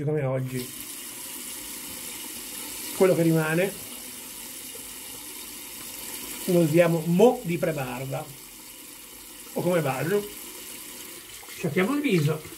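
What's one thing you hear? A man speaks close up in short phrases with pauses.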